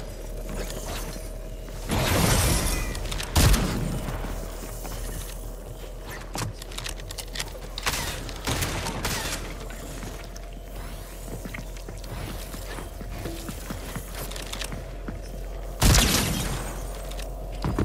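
Wooden walls snap into place with quick clacks.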